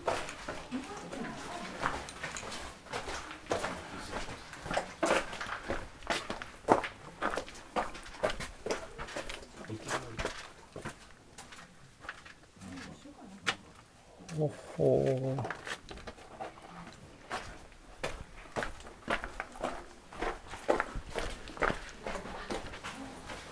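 Footsteps crunch on loose stone and gravel.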